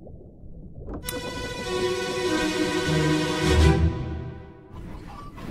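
A pocket watch rings with a whirring chime.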